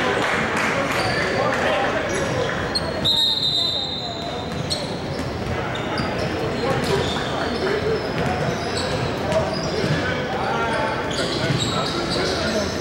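Men talk and call out in a large echoing gym.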